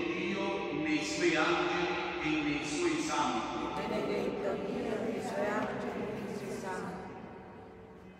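A man sings slowly in a large echoing hall.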